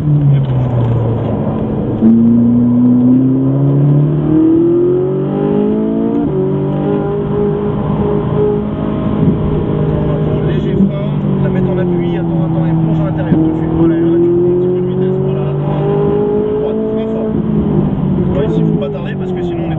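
A car engine roars loudly, rising and falling in pitch as it speeds up and shifts gears.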